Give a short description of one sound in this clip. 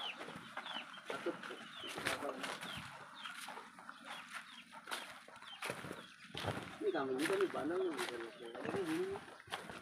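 Footsteps crunch and rustle over loose plastic litter.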